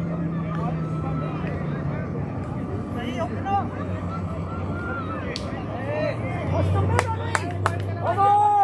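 Young men call out to each other across an open field, heard from a distance.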